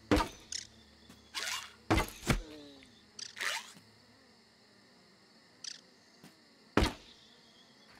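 A tool strikes hard against a solid block in a few sharp blows.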